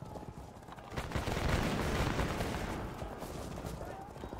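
A volley of musket fire crackles and rumbles.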